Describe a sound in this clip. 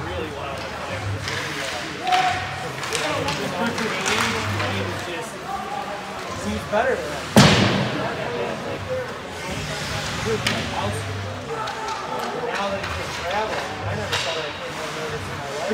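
Spectators talk and call out nearby in an echoing rink.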